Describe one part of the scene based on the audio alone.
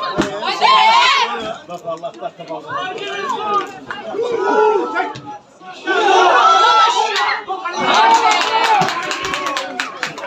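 Young men shout to each other across an open outdoor pitch.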